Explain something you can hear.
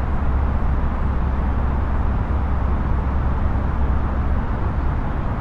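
Jet engines hum with a steady, deep rumble of cockpit noise.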